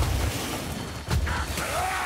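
A fiery blast roars.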